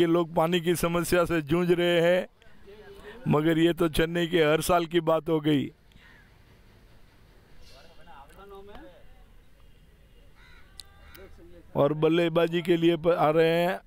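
Several men chatter outdoors at a distance.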